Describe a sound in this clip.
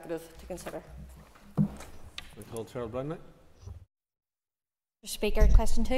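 A young woman speaks formally into a microphone.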